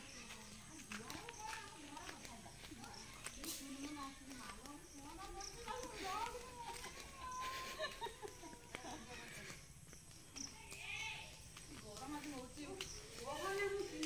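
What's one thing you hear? Women talk and call out at a distance outdoors.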